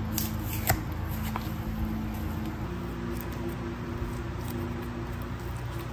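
Soft slime squishes and squelches between fingers.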